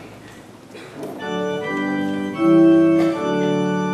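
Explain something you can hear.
A group of women and men sing together.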